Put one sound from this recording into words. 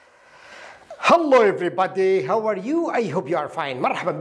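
A man speaks clearly and warmly into a close microphone.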